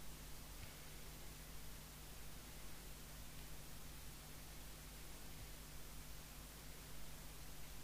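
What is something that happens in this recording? A pen scratches softly on paper as it writes.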